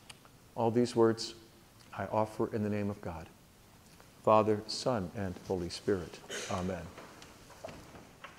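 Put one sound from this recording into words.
An elderly man speaks calmly to a gathering in an echoing room.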